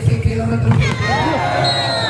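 A volleyball is spiked with a hard slap.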